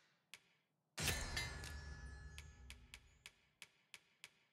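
A crafting chime rings out and fades.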